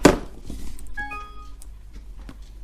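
A phone gives a short electronic chime.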